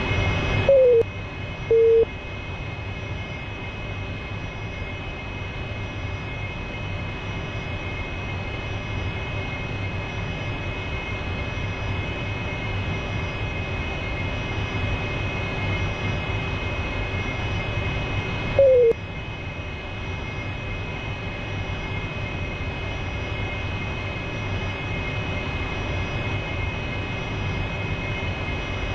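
A jet engine hums steadily from inside the cockpit.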